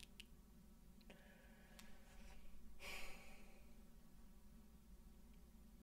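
A young woman speaks softly and cheerfully close by.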